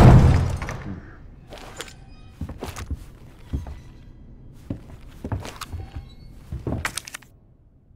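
Footsteps thud slowly across a hard floor.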